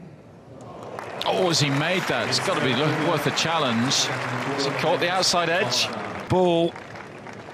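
A crowd of spectators cheers and applauds.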